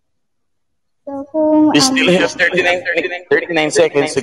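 A young girl speaks with animation over an online call.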